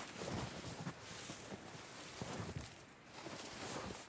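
A heavy body thuds down onto snow.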